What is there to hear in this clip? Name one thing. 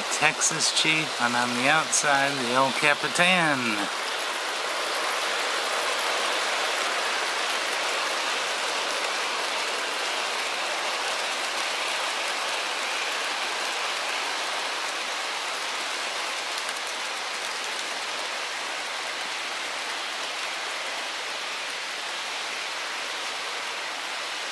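A toy train rattles and hums steadily along its track.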